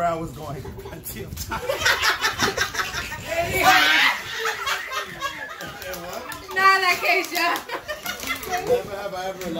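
Several people laugh and chatter together nearby.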